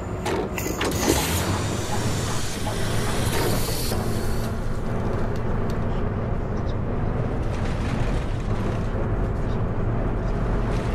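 Tyres roll on the road as the bus drives along.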